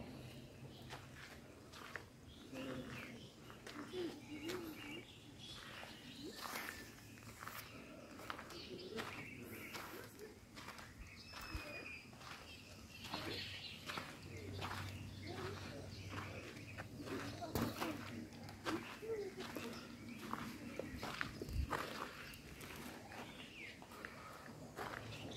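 Footsteps crunch slowly on gritty ground.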